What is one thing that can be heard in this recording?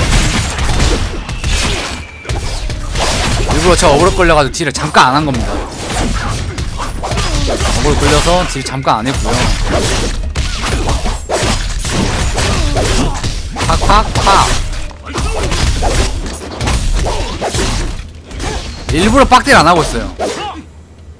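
Game combat sounds of blades clashing and magic blasts ring out.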